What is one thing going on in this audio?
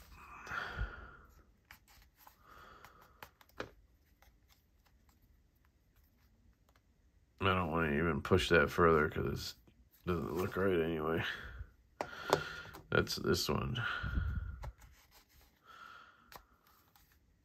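A knife slides into a plastic sheath and clicks into place.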